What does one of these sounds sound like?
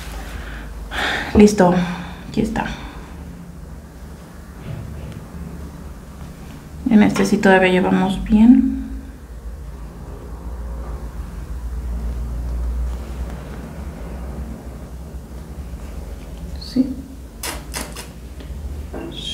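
Thread rustles as it is pulled through stiff cloth.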